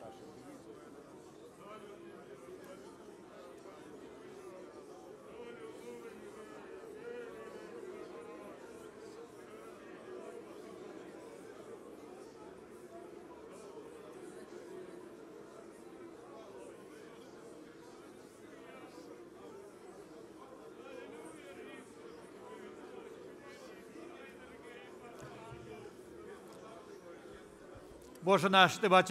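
A large crowd of men and women pray aloud together in an echoing hall.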